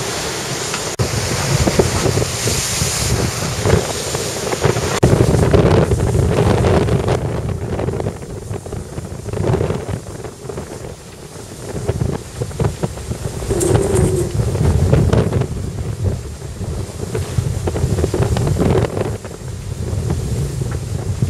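Strong wind blows and buffets outdoors.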